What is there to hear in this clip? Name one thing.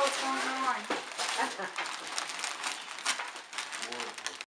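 Wrapping paper crackles and tears as a gift is unwrapped.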